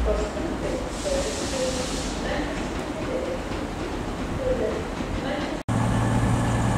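A train rolls slowly towards the listener.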